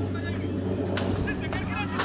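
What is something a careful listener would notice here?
A cricket bat strikes a ball with a sharp crack in the distance.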